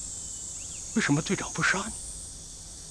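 A young man speaks tensely and close by.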